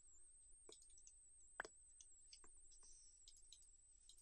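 A soft click sounds once as an item is moved.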